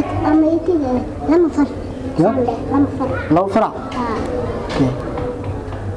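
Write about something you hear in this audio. A young man speaks quietly up close.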